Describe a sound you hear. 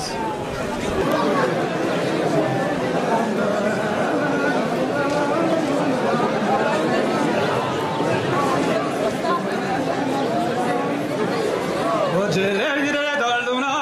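A man speaks with animation into a microphone over a loudspeaker, outdoors.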